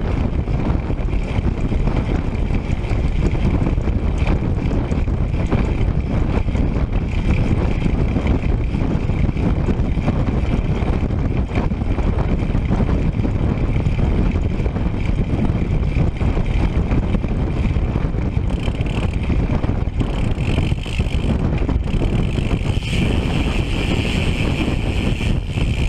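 Bicycle tyres roll over a rough road.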